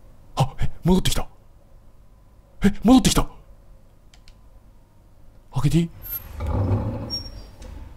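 A wooden door slowly creaks open.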